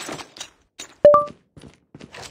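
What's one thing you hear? A short game chime sounds as an item is picked up.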